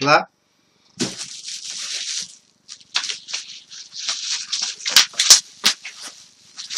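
Plastic bubble wrap crinkles and rustles in hands.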